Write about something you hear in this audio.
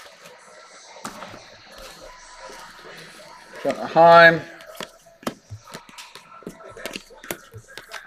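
Trading cards rustle and tap as hands shuffle them.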